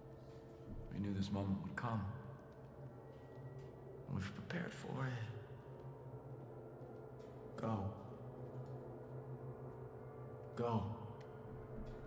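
A man speaks calmly and solemnly, close by.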